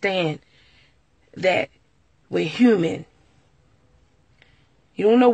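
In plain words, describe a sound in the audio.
A woman speaks close up in short bursts, with pauses between.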